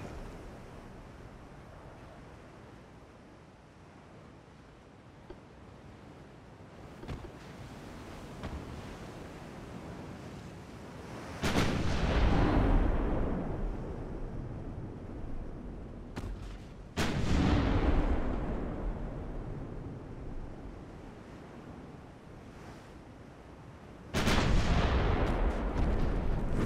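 Sea waves wash steadily in the background.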